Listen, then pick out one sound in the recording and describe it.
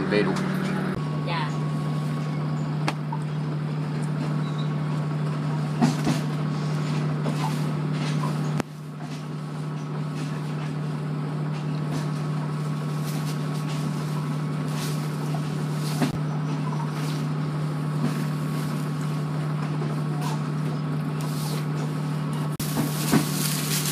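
A train rumbles steadily.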